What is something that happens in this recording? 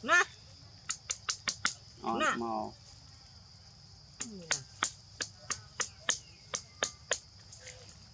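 A plastic bottle crinkles and clicks in a hand.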